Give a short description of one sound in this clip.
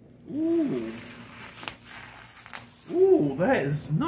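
A phone's handling rustles and knocks near the microphone.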